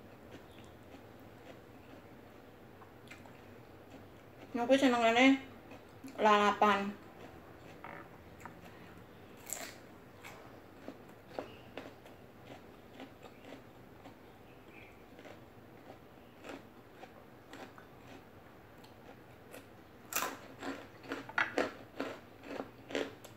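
A woman crunches and chews raw vegetables, close up.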